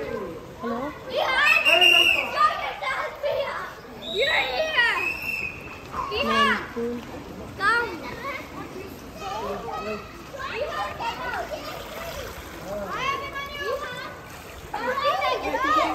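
Water splashes as children swim.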